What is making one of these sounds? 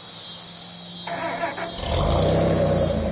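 A truck engine cranks and starts.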